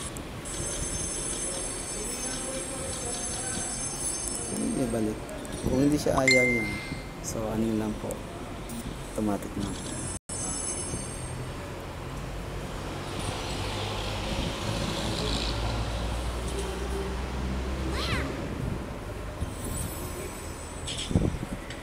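Bright game chimes and pops play from a phone.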